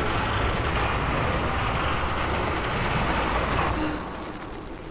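A heavy metal winch cranks and grinds loudly.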